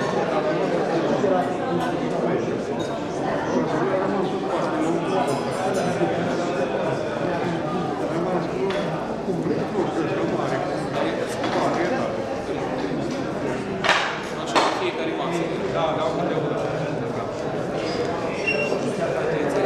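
A middle-aged man chants a prayer in a steady voice.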